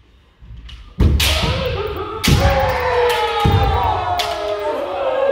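Bamboo swords strike sharply against armour.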